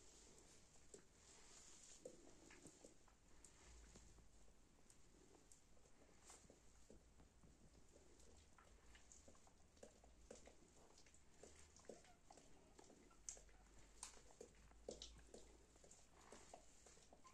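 Newborn puppies squeak and whimper softly close by.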